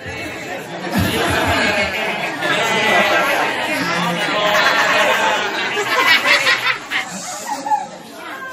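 A crowd of children laughs and chatters.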